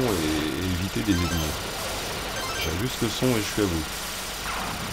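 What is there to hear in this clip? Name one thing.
Explosions from an arcade game boom and crackle.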